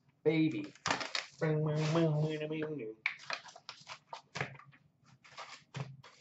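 Plastic wrapping crinkles and tears as a pack is opened.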